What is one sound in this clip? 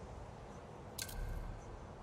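A soft click sounds once.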